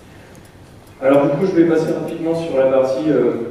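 A young man speaks calmly through a microphone.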